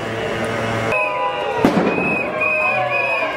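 A crowd of people talks and shouts outdoors.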